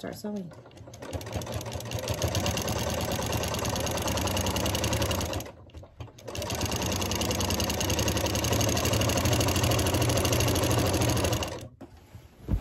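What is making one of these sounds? A sewing machine whirs steadily as it stitches.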